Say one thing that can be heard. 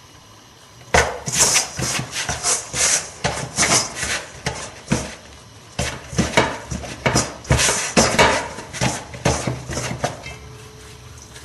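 A hand mixes and squeezes wholemeal dough in a bowl.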